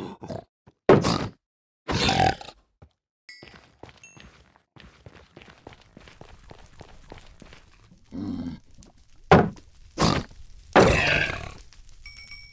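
A sword strikes a creature with a heavy thud.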